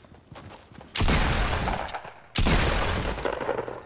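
A shotgun fires two loud, booming blasts.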